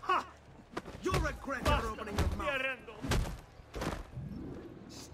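Heavy punches thud in quick succession.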